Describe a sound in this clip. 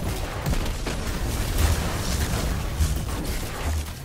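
An energy blast crackles and booms.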